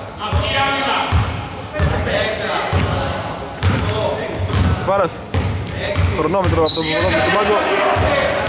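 A basketball bounces with deep thumps on a wooden floor in an echoing hall.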